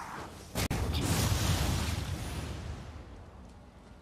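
A heavy blow lands with a loud crash and a rushing burst.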